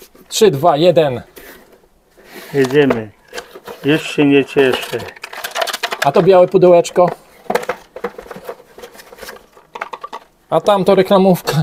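Cardboard flaps and inserts rustle and crinkle as a box is opened.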